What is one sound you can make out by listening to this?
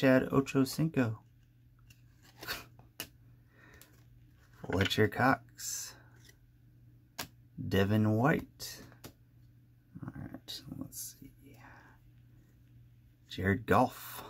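Cardboard trading cards slide and rustle softly in a hand.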